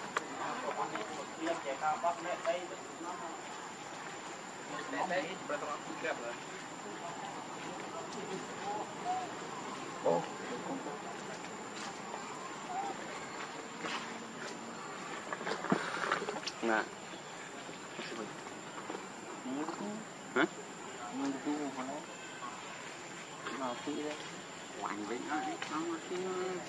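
Young monkeys squeal and chatter nearby.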